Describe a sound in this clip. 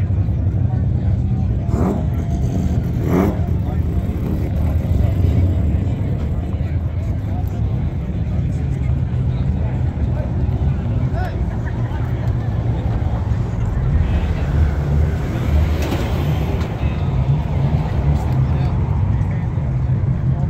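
A crowd of adults chatters in the distance outdoors.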